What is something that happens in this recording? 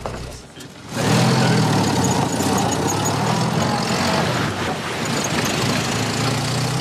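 A jeep engine rumbles as the vehicle drives off.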